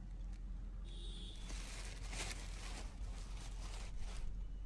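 Plastic sheeting rustles and crinkles.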